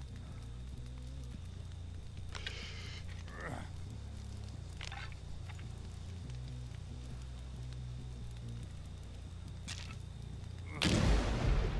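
Sparks crackle and fizz close by.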